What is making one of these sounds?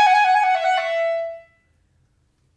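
A clarinet plays a short phrase and ends on a held note.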